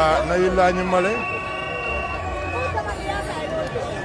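Car horns honk nearby.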